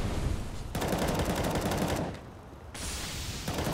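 A smoke grenade hisses steadily.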